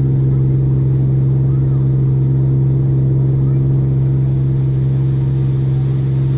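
A motorboat engine drones steadily at close range.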